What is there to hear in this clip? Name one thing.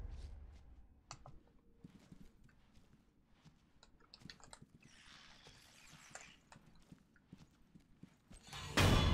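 Soft footsteps patter on a wooden floor.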